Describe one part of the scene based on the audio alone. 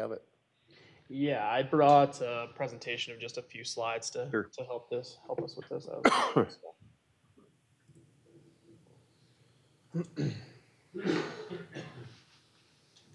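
A man speaks into a microphone to a room, in a measured presenting tone.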